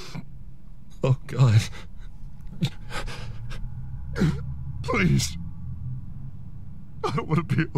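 A man speaks in a low, quiet voice, close by.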